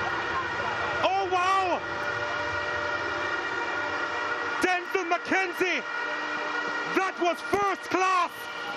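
Young men shout and cheer excitedly nearby.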